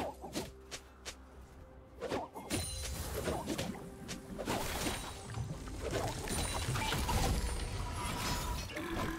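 Game characters clash with spell and weapon effects.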